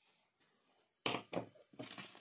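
A glass knocks down onto a table.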